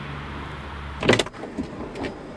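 A car door unlatches and swings open.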